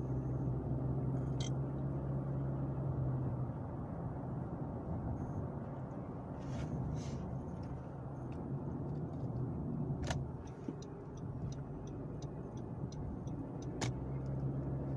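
A car engine hums steadily with road noise from the tyres, heard from inside the car.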